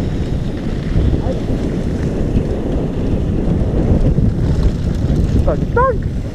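Wind rushes loudly past a rider's helmet.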